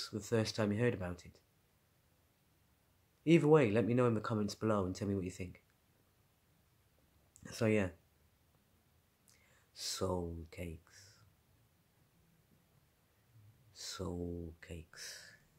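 A man talks close up, calmly and in short bursts, with pauses in between.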